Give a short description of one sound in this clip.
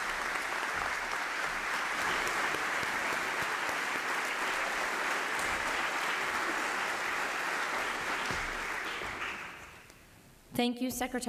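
A large crowd applauds in a big echoing hall, then the applause fades out.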